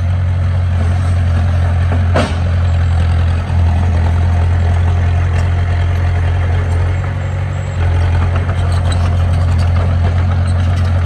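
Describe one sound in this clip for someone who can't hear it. A bulldozer pushes and scrapes loose dirt.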